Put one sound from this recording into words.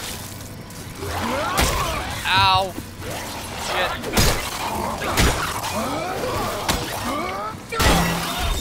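Monsters snarl and screech.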